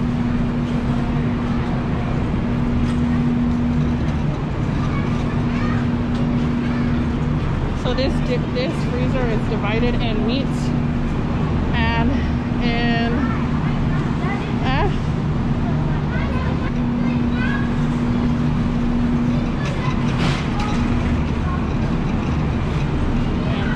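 A shopping cart rolls over a smooth floor.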